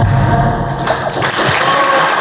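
A young woman sings into a microphone over a loudspeaker.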